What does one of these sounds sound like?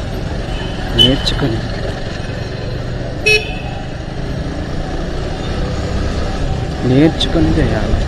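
Vehicle horns honk in short bursts.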